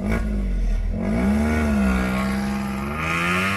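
A car drives away with its engine revving.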